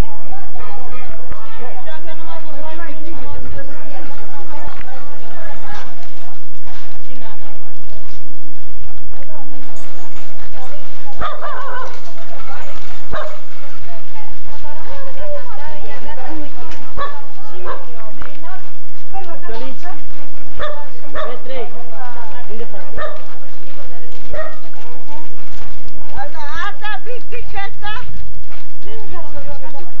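A crowd of men and women chatter loudly outdoors.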